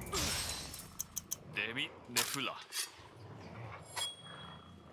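A blade slashes and clangs against a monster's hide.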